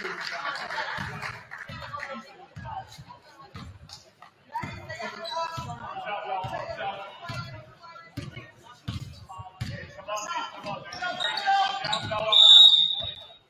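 A basketball bounces on a hard court in a large echoing gym.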